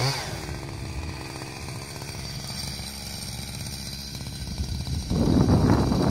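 A chainsaw engine idles with a steady buzz.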